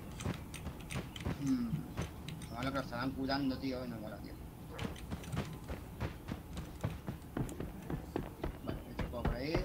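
Quick footsteps patter on a hard surface.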